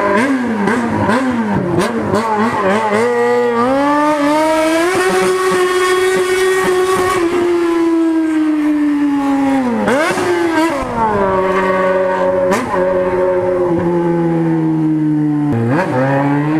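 A motorcycle engine roars loudly, revving up and down as the bike accelerates and shifts gears.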